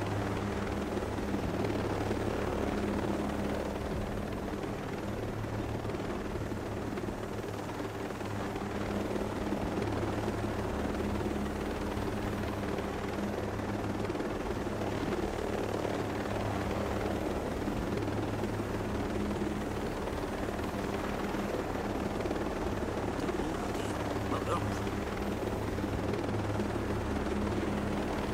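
A helicopter's rotor thumps steadily with a loud engine drone.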